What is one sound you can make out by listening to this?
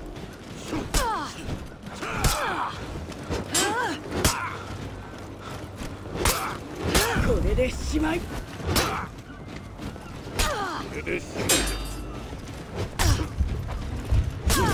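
Steel blades clash and clang in sharp bursts.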